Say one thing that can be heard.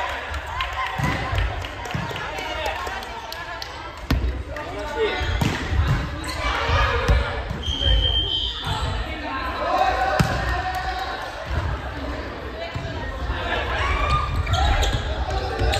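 A volleyball thuds sharply as players hit it.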